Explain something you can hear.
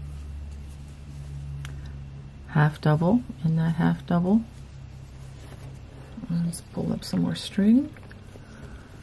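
A crochet hook softly pulls yarn through stitches.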